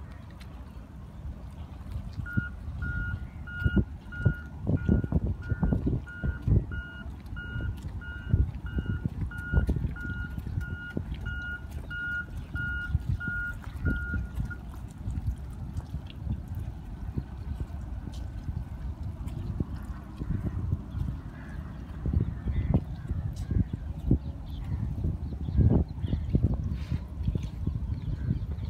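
Water laps against a floating dock.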